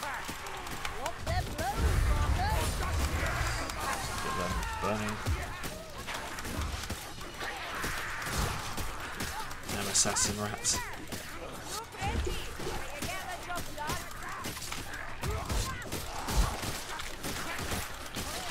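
Blades slash and thud into bodies in a fierce melee.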